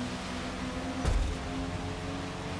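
A car bumps into another car with a dull thud.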